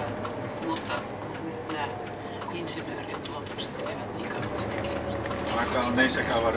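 A bus engine hums steadily.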